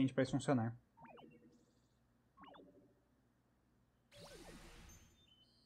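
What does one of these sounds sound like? A magic spell chimes and whooshes in short bursts.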